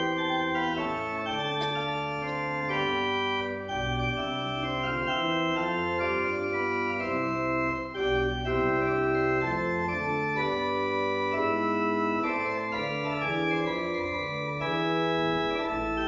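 An organ plays sustained chords.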